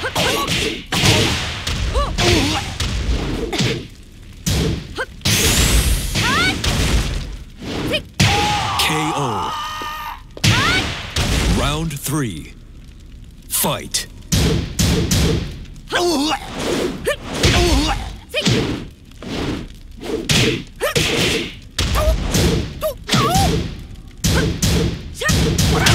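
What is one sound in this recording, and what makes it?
Fighters grunt and shout as they strike.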